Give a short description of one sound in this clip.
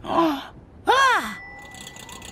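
A man exclaims in surprise.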